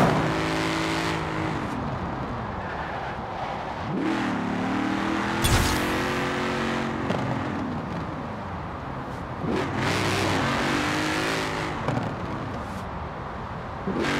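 A powerful car engine roars, rising in pitch and dropping with each gear change.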